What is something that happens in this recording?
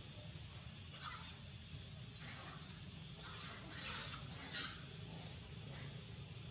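A young monkey squeals sharply.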